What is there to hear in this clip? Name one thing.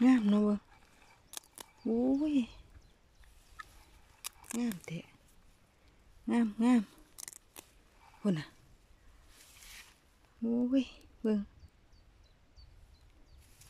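Leafy plants rustle as a hand brushes through them.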